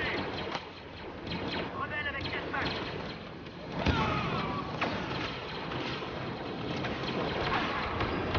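A lightsaber hums and buzzes.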